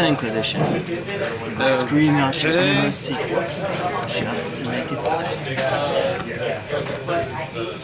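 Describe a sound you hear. Playing cards are laid down softly on a cloth mat.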